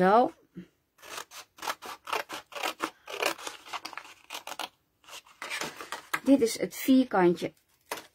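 Scissors snip through thin card.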